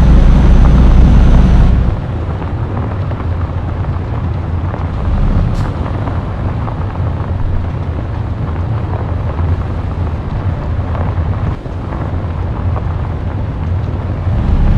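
Tyres rumble over a gravel road.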